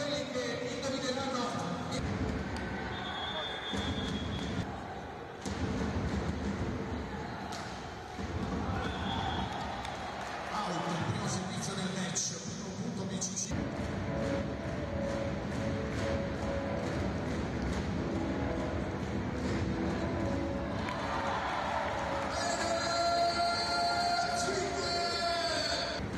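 A large crowd cheers and claps in an echoing hall.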